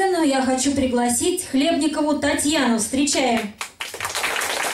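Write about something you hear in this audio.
A woman sings loudly through a microphone in an echoing hall.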